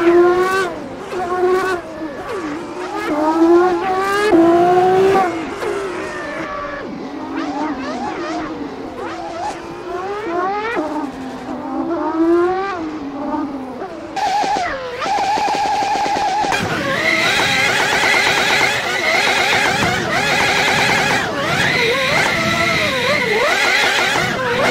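A car engine revs up and down sharply.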